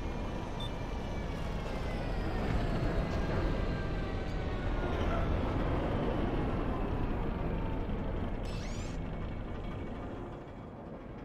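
A spaceship engine roars and slowly fades away.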